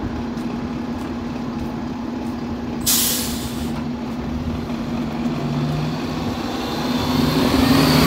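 A bus engine idles with a low, steady hum close by.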